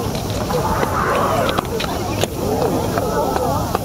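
A crowd of people chatter all around, outdoors.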